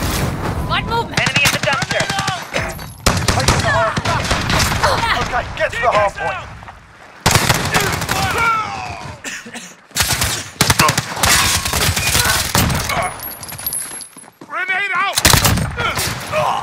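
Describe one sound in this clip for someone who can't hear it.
A rifle fires in rapid bursts, with loud sharp cracks.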